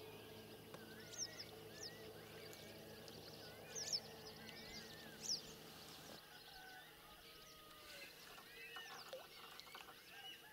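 Water laps gently against the side of a moving boat.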